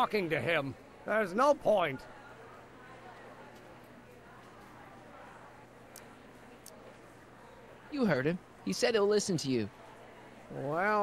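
A man speaks with annoyance, close by.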